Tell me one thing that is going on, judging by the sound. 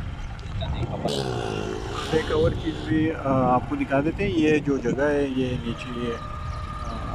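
A motorcycle engine passes close by, rising and then fading.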